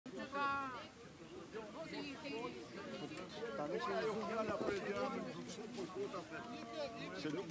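A crowd of men and women talk and shout over one another.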